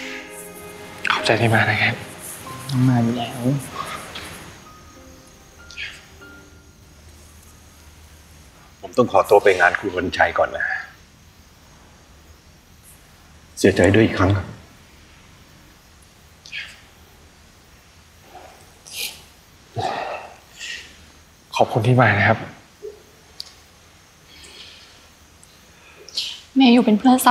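A young man speaks.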